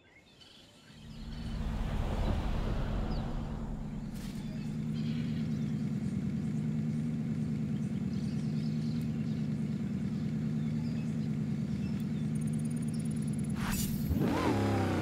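An off-road engine idles with a deep, steady rumble.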